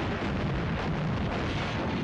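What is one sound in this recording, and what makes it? Rockets roar as they launch.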